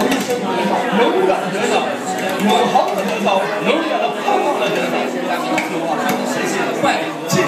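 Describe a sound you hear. A crowd of men and women pray aloud together with fervour.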